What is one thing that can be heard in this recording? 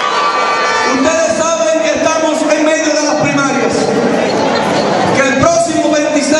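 A man speaks forcefully into a microphone over loudspeakers in a large echoing hall.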